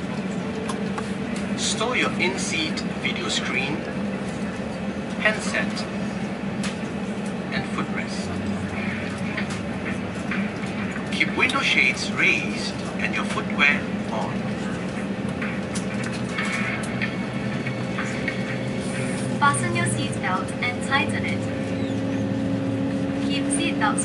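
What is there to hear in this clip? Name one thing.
A steady low engine drone fills an aircraft cabin.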